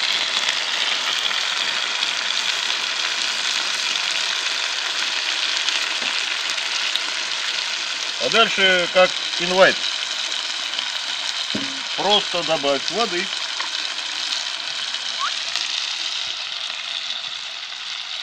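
Mushrooms sizzle as they fry in a cast-iron cauldron.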